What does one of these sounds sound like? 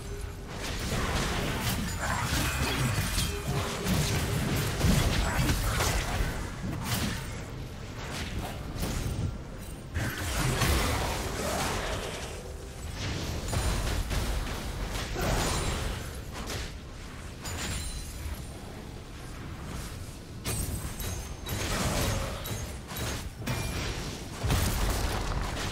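Spell effects whoosh and crackle in a fast game fight.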